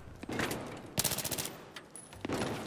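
Rapid gunshots crack in a quick burst.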